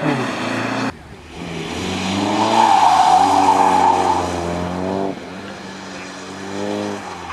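Another car engine revs hard and roars past.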